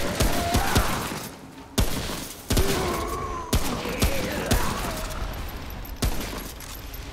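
Gunshots fire in quick, sharp bursts.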